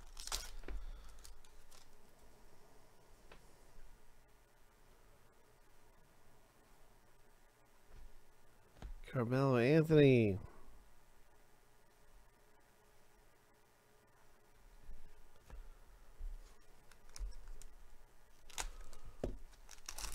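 Plastic wrapping crinkles as a card pack is handled.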